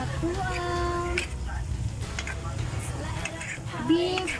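A spatula scrapes and stirs through a stew in a pan.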